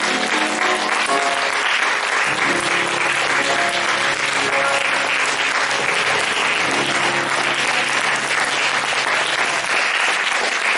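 A piano plays sustained closing chords.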